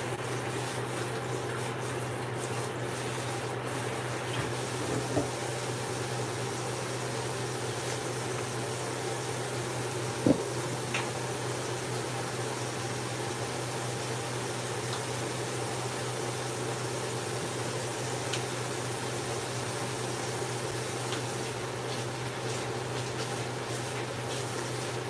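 Dishes clink and knock at a sink.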